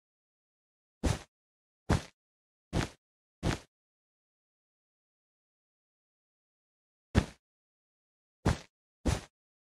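Blocks click as they are placed in a video game.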